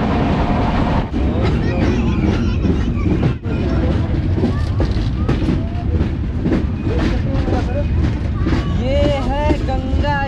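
A train rumbles and rattles over a bridge.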